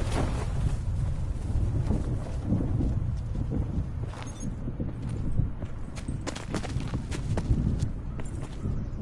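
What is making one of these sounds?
Wind rushes loudly past during a parachute descent.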